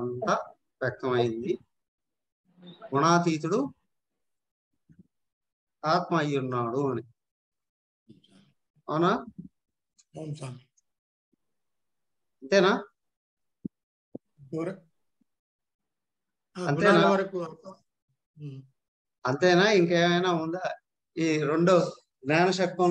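An adult speaks in short phrases with pauses, heard through an online call.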